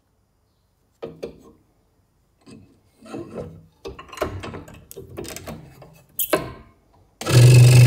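Small wooden pieces knock and scrape against a table.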